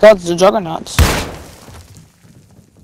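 An explosion bursts loudly nearby.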